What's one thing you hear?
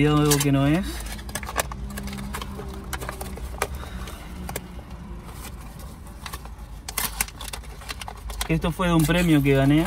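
Paper crinkles and tears as a parcel is opened.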